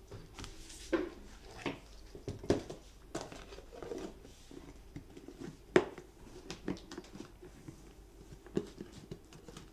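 A plastic lid is pressed down and clicks shut on a plastic food container.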